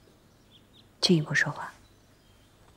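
A man speaks in a low, firm voice, close by.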